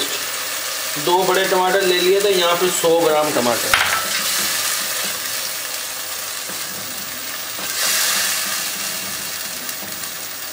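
A thick sauce bubbles and sizzles gently in a pot.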